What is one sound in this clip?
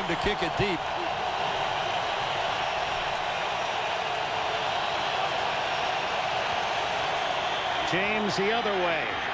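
A stadium crowd roars steadily during the play.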